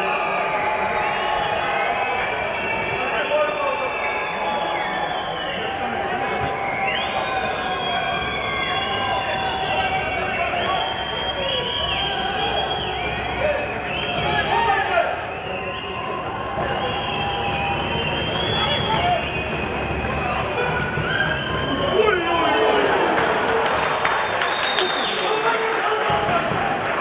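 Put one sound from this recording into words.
Young men shout to each other from a distance across an open outdoor pitch.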